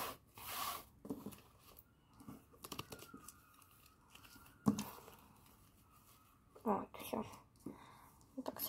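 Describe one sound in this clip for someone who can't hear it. Paper cards rustle and tap as a hand handles a stack.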